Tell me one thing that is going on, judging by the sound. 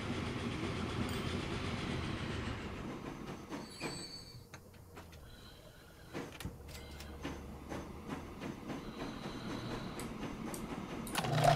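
A train rumbles along a track.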